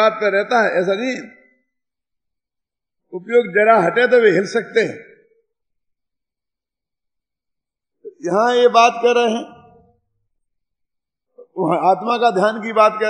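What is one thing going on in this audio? An elderly man chants slowly in short phrases, with pauses between them.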